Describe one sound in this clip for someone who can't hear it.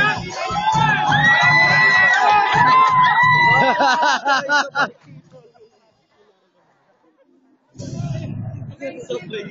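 A crowd of young people cheers and shouts outdoors.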